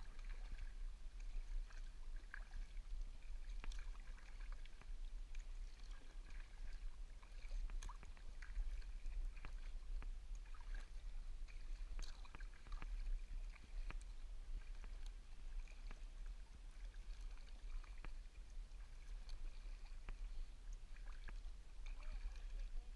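A paddle dips and splashes rhythmically in calm water.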